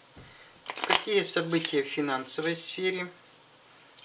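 A card is laid softly down on a cloth-covered table.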